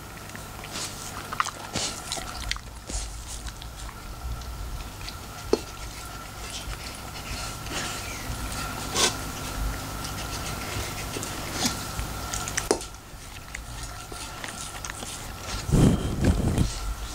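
A metal bowl clinks and scrapes on a wooden floor.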